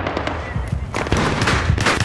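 Gunshots crack in quick bursts nearby.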